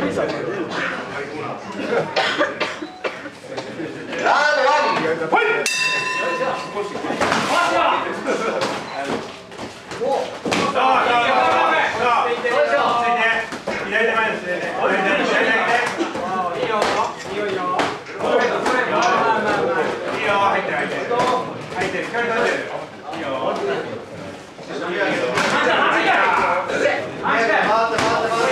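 A man talks loudly nearby in a room with some echo.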